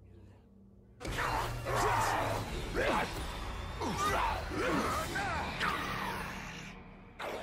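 A creature snarls and screeches while attacking.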